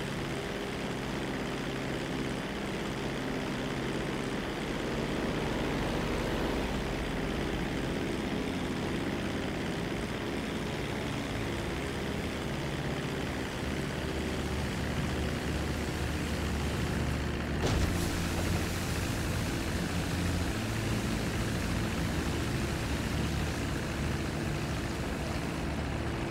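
A propeller plane engine drones steadily.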